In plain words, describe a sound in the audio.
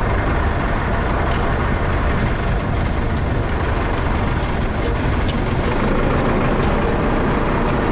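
A hoe scrapes and chops into soil.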